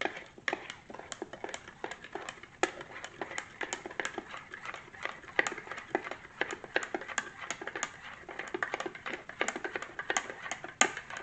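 A spoon stirs and clinks rapidly against the inside of a ceramic mug.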